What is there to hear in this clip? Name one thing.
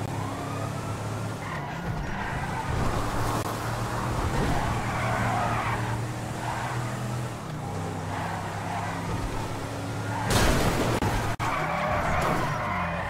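A car engine hums and revs steadily as the car drives along.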